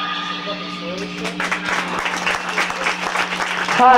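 An electric guitar strums chords through an amplifier.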